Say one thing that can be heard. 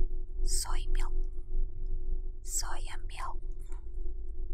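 A young woman speaks softly and close up.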